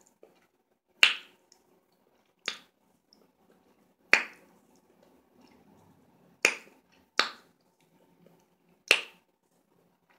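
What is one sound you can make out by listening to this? A woman smacks her lips loudly.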